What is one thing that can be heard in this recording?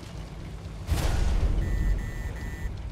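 A shell strikes a tank with a loud, heavy blast.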